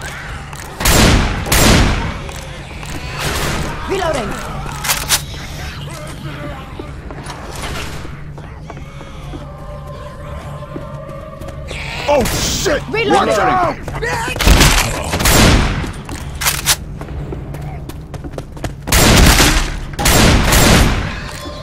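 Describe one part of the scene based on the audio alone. Shotgun blasts boom loudly, one after another.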